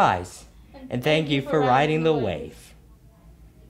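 A second young woman speaks brightly through a microphone.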